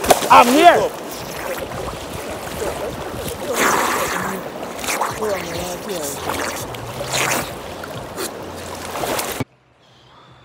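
Water splashes and churns loudly close by.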